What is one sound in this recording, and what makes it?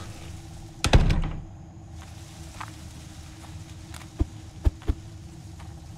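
An axe strikes wooden boards with loud thuds.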